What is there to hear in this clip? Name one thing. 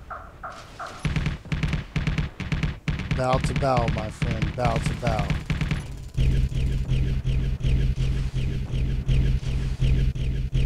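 A gun fires rapidly in short bursts.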